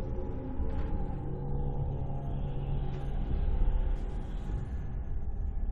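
Footsteps tread slowly across a floor.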